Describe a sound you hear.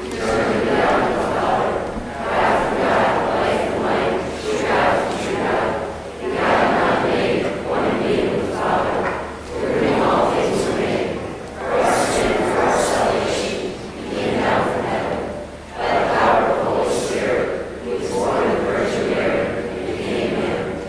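A crowd of young people sings together in a large echoing hall.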